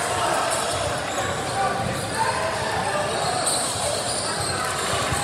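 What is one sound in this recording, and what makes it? A crowd chatters and calls out in a large echoing gym.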